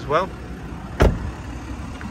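A car door shuts with a heavy thud.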